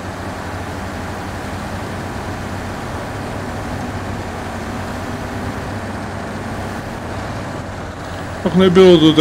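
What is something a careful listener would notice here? A truck engine rumbles steadily as it drives slowly over rough ground.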